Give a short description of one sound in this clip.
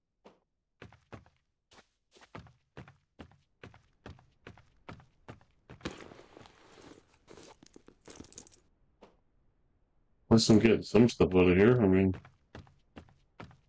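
Footsteps thud steadily on hollow wooden planks.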